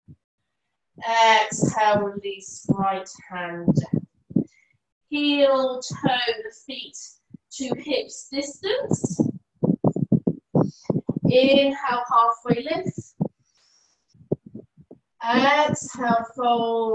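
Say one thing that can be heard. A woman speaks calmly and clearly, heard through an online call.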